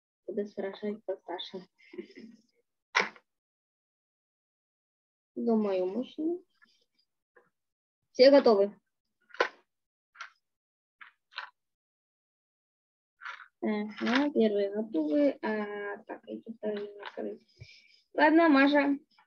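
A girl speaks calmly to a microphone, heard as if through an online call, in short bursts with pauses.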